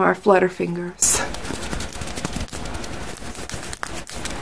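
Hands rub and brush close to a microphone with a rustling noise.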